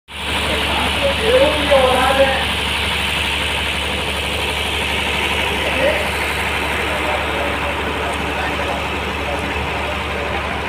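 Voices of a crowd murmur outdoors.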